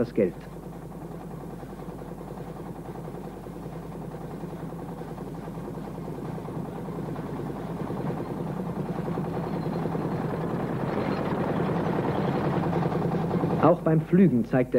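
A combine harvester engine drones steadily.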